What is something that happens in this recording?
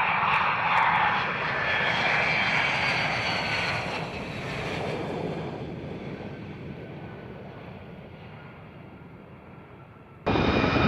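A jet engine roars loudly, then slowly fades into the distance.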